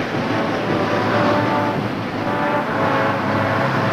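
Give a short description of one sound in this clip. A brass band plays outdoors.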